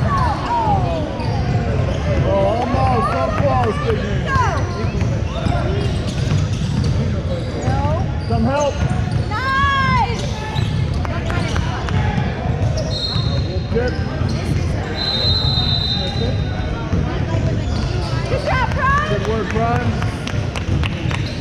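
Children shout and call out across the gym.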